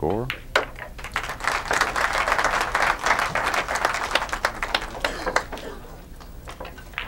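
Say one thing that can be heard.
A crowd applauds in a large room.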